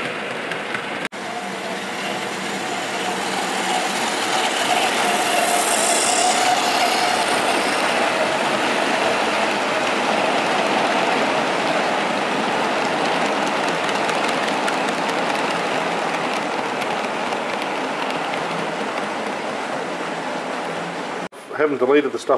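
A small model train rumbles and clatters along its track, growing louder as it passes and then fading away.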